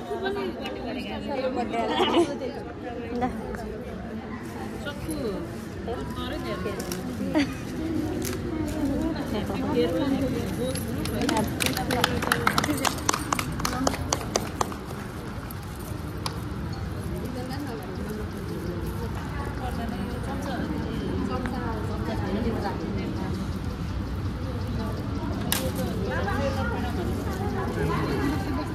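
A crowd of women and men chatter and laugh close by.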